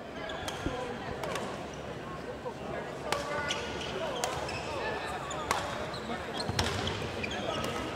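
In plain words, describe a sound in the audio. Rackets smack a shuttlecock sharply in a large echoing hall.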